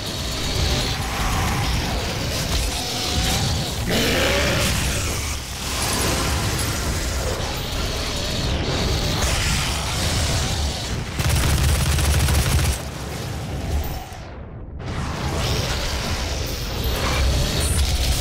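Monsters growl and roar.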